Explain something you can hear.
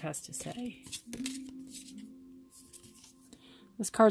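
A card rustles softly as a hand picks it up.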